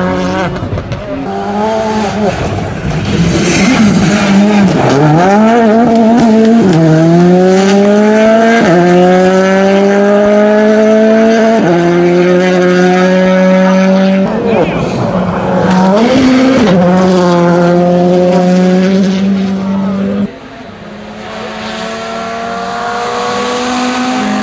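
A rally car engine screams at full throttle, shifting up through the gears.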